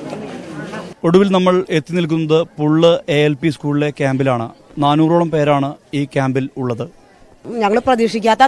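A man speaks steadily into a microphone as a reporter.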